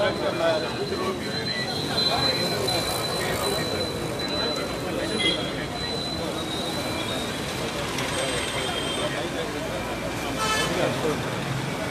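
A large crowd of men and women chants and shouts outdoors.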